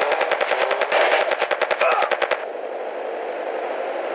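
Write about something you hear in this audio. A motorbike engine revs.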